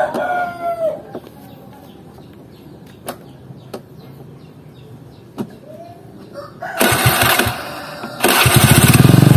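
A metal kick-start lever clicks and clanks.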